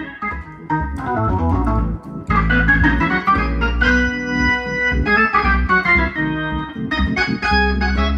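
Deep organ bass notes sound from foot pedals.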